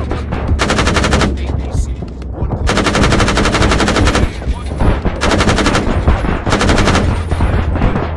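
A heavy cannon fires in rapid bursts.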